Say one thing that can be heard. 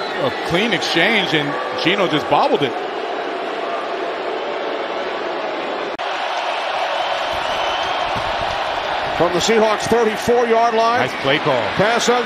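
A large stadium crowd roars and murmurs steadily outdoors.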